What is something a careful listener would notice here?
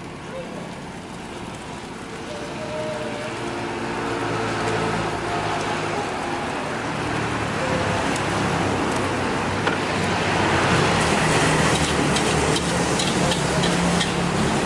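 Noodles sizzle as they fry in a hot wok.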